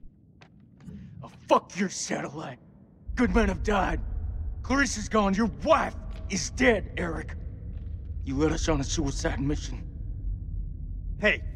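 A man speaks angrily and close by.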